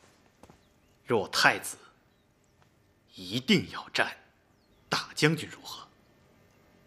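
A younger man speaks calmly.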